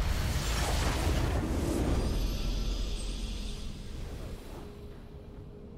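A game's victory fanfare swells loudly and fades.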